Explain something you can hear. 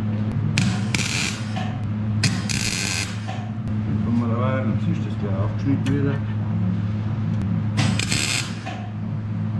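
A welding torch crackles and hisses in short bursts.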